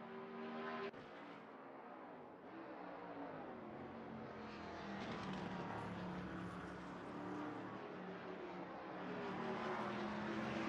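A race car engine roars at high speed, its pitch shifting as it passes.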